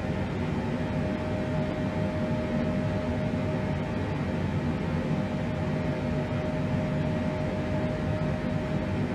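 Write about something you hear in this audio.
Jet engines drone steadily with a low rumble and a faint high whine.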